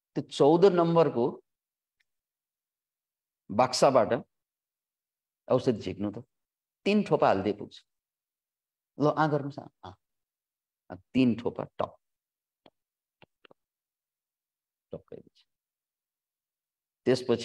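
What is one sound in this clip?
A middle-aged man speaks calmly in short phrases with pauses, heard through an online call.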